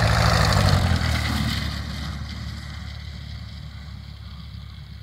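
A small propeller engine buzzes loudly nearby and fades into the distance.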